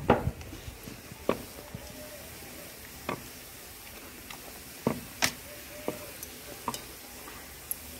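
Oil sizzles and bubbles steadily in a hot pan.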